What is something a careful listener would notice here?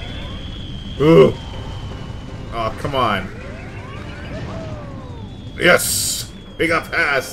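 Fireballs roar and burst in a game.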